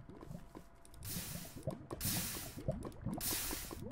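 Lava bubbles and pops nearby.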